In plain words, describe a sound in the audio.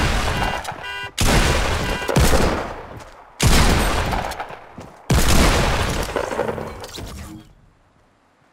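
Gunshots blast in loud, quick bursts.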